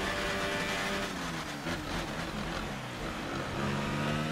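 A racing car engine drops in pitch as the car brakes hard.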